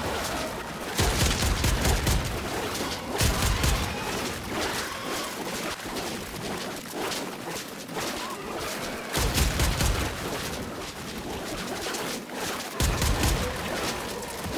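Heavy blows and slashing impacts hit in short, loud bursts.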